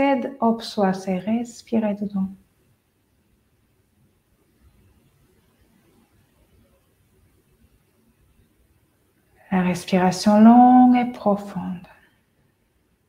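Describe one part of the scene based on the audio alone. A woman speaks calmly and softly, close to a microphone, with long pauses.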